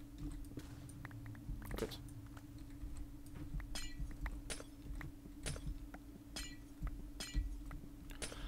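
Glassy blocks shatter with sharp cracks, one after another.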